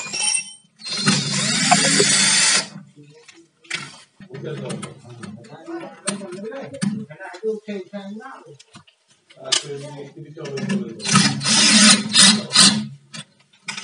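A cordless drill whirs as it drives screws.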